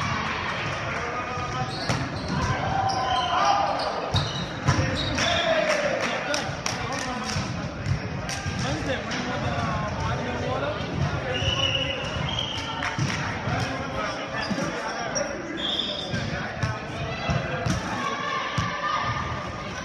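Young men call out and talk loudly in a large echoing gym.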